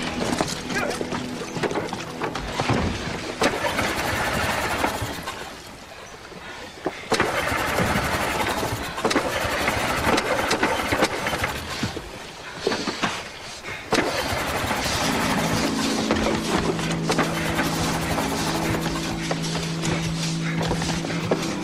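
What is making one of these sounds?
Water laps gently against a small boat.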